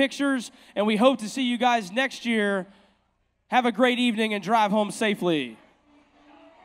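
A man speaks with animation into a microphone over loudspeakers in a large hall.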